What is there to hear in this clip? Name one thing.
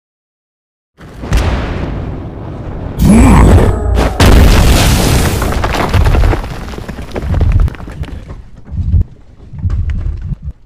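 Fiery blasts boom and crackle.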